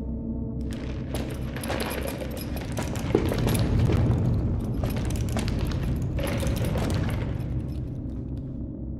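Heavy footsteps stomp and shuffle across a hard floor.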